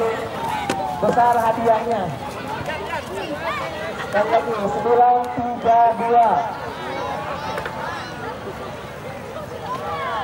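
A crowd of young men cheers and shouts outdoors.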